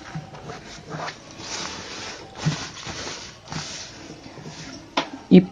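Cloth rustles and slides as hands smooth and fold it.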